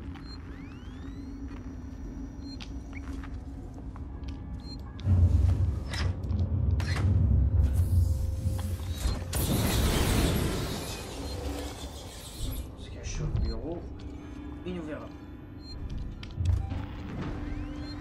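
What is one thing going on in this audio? A handheld motion tracker beeps.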